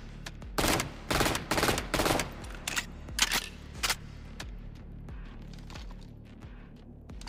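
A gun's metal parts click and rattle as it is handled.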